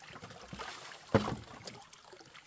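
A plastic basin knocks against bamboo poles.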